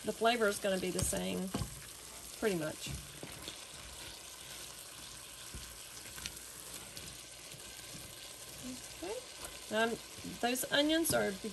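A wooden spoon stirs and scrapes through chopped food in a metal pot.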